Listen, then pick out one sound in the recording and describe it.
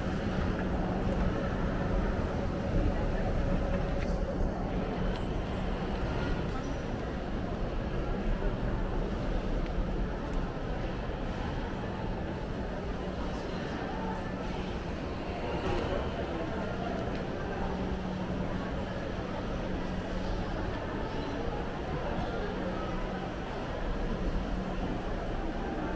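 A busy indoor hall hums with a low murmur of distant voices.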